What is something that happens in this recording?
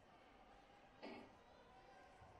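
A kick lands with a sharp smack on a body protector in an echoing hall.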